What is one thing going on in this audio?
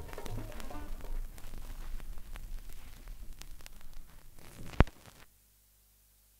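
Music plays from a vinyl record on a turntable, with surface crackle.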